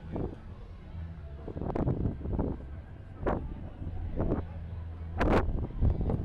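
Water laps gently against a dock.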